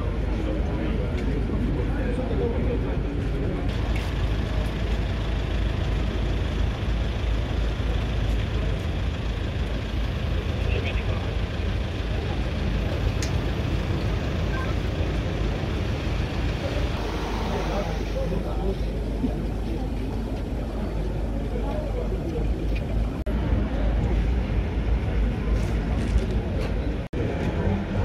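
A crowd of people chatter loudly outdoors.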